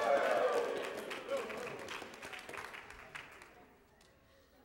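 A crowd in a large echoing hall claps.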